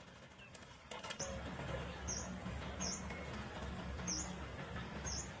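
Leafy seedlings rustle as hands press them into soil.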